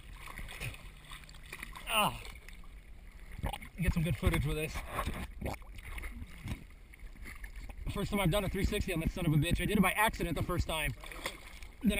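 Water laps and sloshes close by.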